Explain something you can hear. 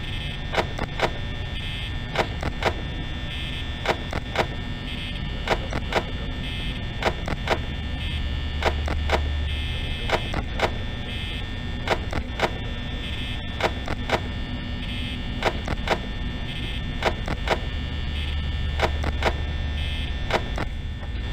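An electric fan whirs steadily.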